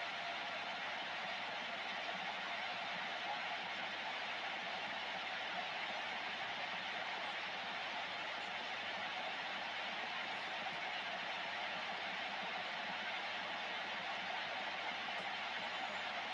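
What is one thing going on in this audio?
Steady static hisses from a radio loudspeaker.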